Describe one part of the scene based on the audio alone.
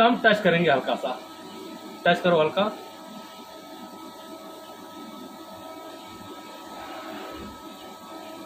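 A lathe spins with a steady mechanical whir.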